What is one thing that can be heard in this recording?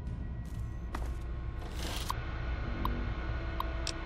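Keys clatter quickly as text is typed.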